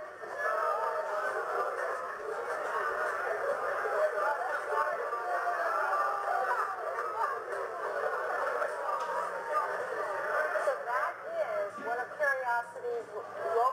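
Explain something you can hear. A large crowd of men and women cheers and talks excitedly all around.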